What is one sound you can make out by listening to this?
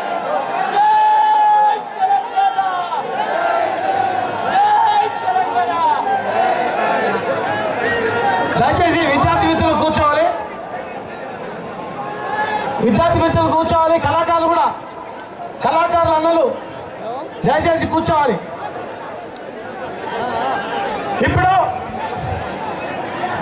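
A large crowd chants and cheers loudly outdoors.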